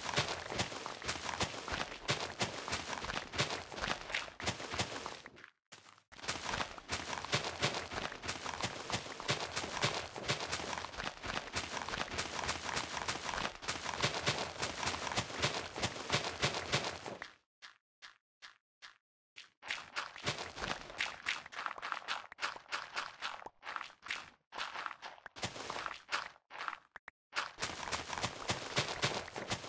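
A shovel digs into dirt with quick, repeated crunches.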